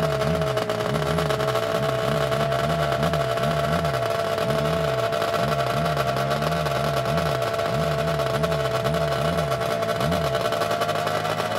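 A snowmobile engine idles nearby, revving in quick, uneven bursts.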